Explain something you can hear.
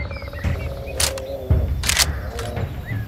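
A rifle bolt clicks and clacks as it is worked.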